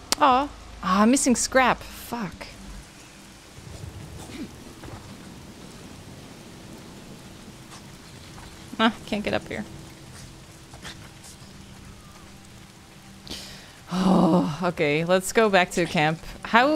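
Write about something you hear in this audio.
A young woman talks with animation close to a microphone, in bursts.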